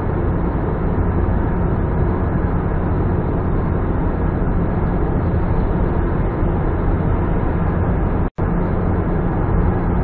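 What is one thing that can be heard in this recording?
A car's engine and tyres roar steadily inside a tunnel.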